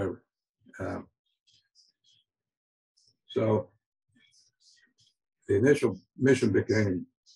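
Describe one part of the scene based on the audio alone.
An elderly man speaks haltingly, with pauses, heard through an online call.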